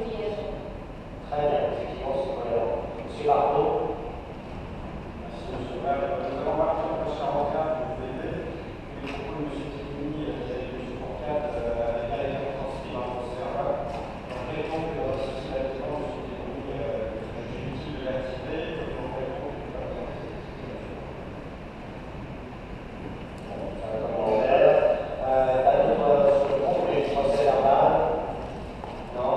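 A man speaks steadily through a microphone in a large echoing hall.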